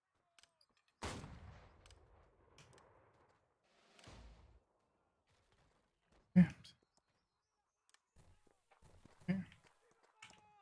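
Loud booms and blasts of rockets and cannon fire ring out.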